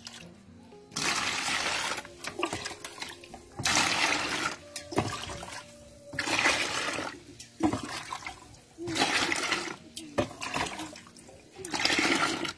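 Water pours and splashes into a bucket in repeated bursts.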